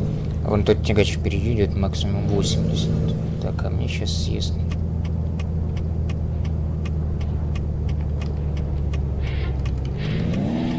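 A truck engine drones steadily at a low pitch, then revs up.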